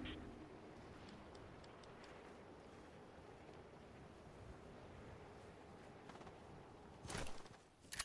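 Wind rushes softly past during a glide.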